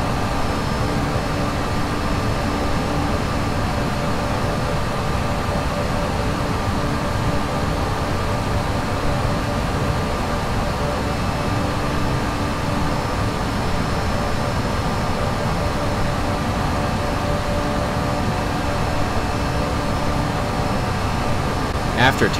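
Jet engines hum and roar steadily.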